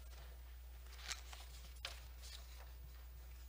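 Papers rustle close to a microphone.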